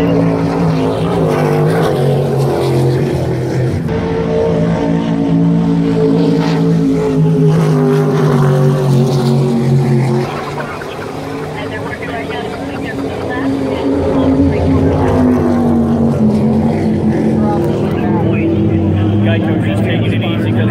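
Powerboat engines roar loudly at high speed, their pitch rising and falling as they pass.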